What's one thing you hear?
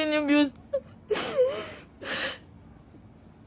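A young woman sniffles into a towel.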